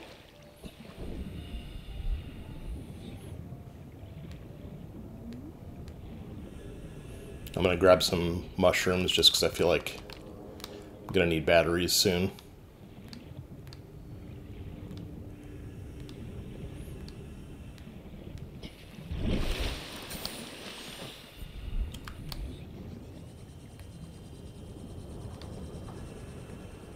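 Muffled underwater sound hums steadily.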